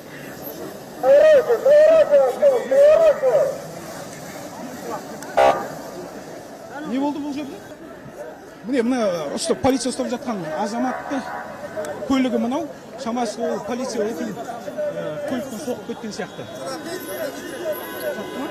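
Several men argue loudly close by.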